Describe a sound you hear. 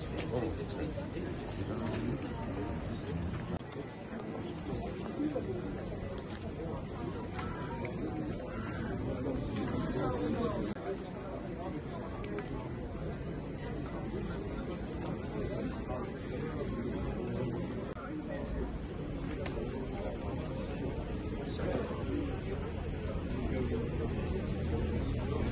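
Men and women murmur and talk nearby outdoors in a crowd.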